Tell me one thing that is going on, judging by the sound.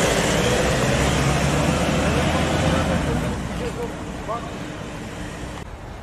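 A pickup truck's engine rumbles as it drives slowly away.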